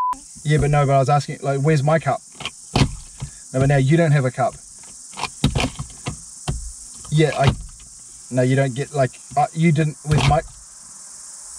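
A man talks calmly and playfully, close by.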